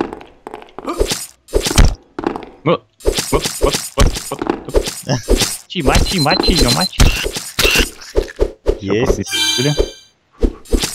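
Blows strike again and again in a fast fight.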